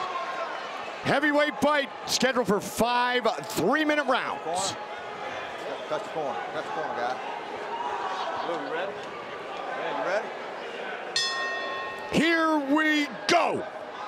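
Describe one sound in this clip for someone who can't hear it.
A man speaks loudly over a loudspeaker in a large echoing hall.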